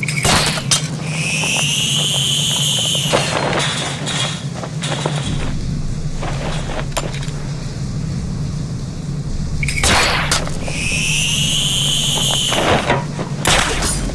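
A grapnel line whirs along a cable with a rising, falling whine.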